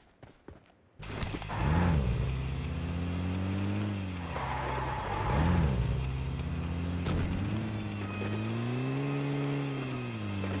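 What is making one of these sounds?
A vehicle engine roars and revs as it drives.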